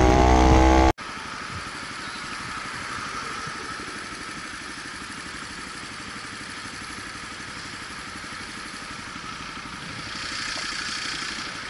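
A motorcycle engine hums quietly at low speed.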